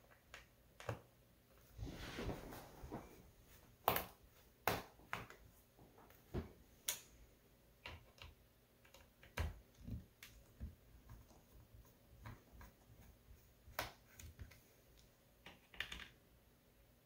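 Small plastic parts click and tap as they are pried loose.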